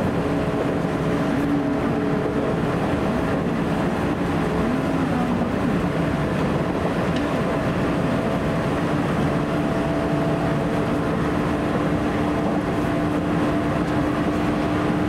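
A train rumbles and hums steadily along the tracks from inside a carriage.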